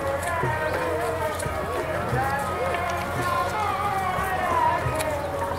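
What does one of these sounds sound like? Footsteps shuffle on a paved road.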